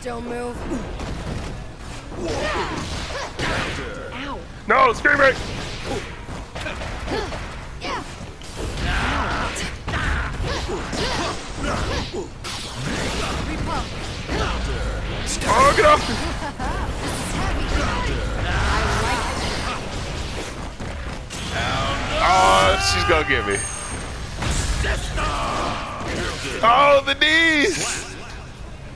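Fighting game characters trade hits with punchy impact sounds.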